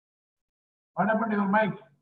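An older man speaks cheerfully through an online call.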